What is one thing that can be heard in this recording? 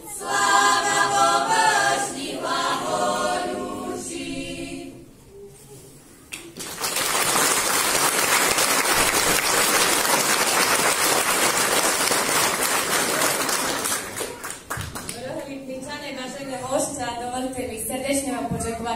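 A group of women sing together in a large echoing hall.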